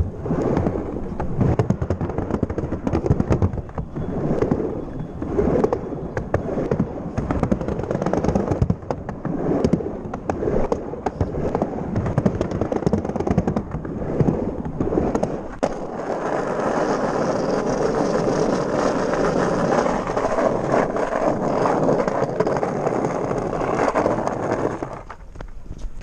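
Skateboard wheels rumble and roar over ramps and paving stones.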